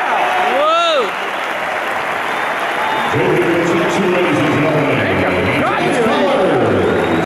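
A large crowd cheers and roars throughout.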